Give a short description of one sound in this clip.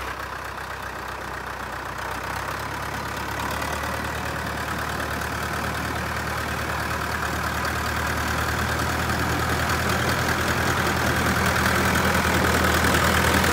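Tractor tyres crunch over packed snow.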